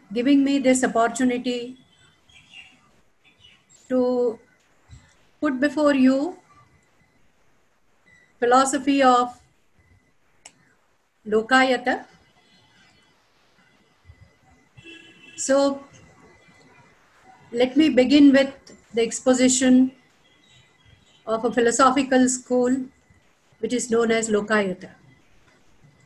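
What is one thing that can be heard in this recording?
An elderly woman speaks calmly in short phrases with pauses, heard through an online call.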